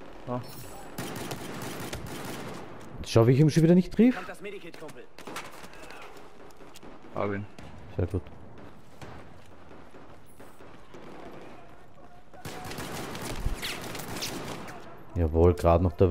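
Gunshots and blasts crack and boom nearby.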